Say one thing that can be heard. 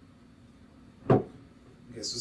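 A glass knocks down onto a table.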